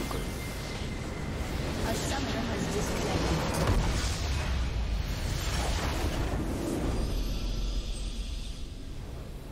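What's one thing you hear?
A loud crackling explosion roars and rumbles.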